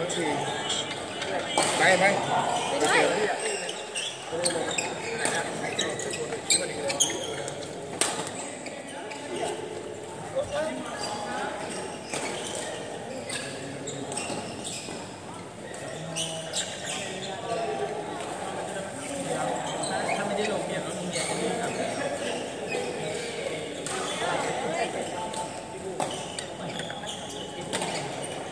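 Voices of young men and women chatter and call out, echoing in a large hall.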